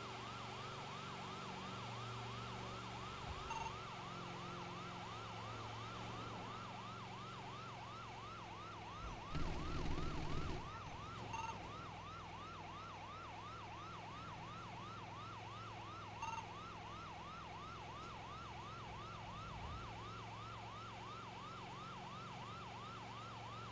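An ambulance siren wails in a fast, steady up-and-down yelp.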